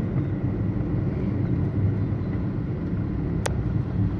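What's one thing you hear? A motorcycle engine hums close by as it passes.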